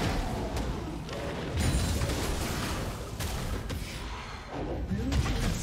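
Magic blasts and weapon hits crash again and again in a video game battle.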